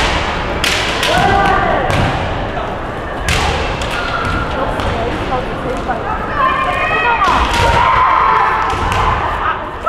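Masked fighters let out loud, drawn-out shouts.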